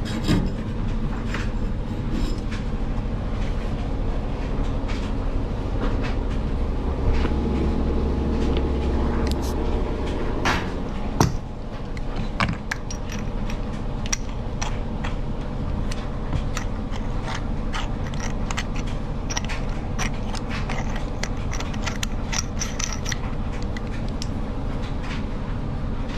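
Metal parts click and knock close by.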